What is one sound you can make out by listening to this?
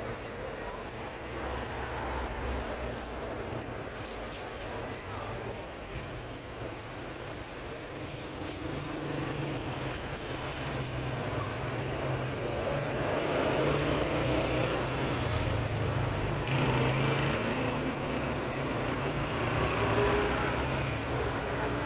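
A plastic bag rustles as tomatoes are dropped into it.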